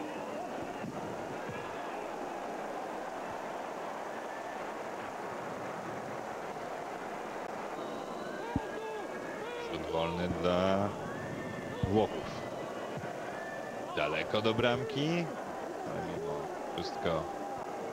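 A large stadium crowd roars and murmurs steadily outdoors.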